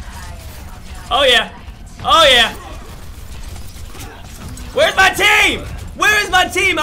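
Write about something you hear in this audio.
A young man speaks loudly and excitedly into a close microphone.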